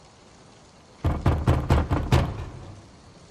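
A fist knocks several times on a wooden door.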